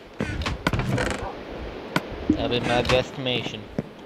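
A wooden chest thuds shut.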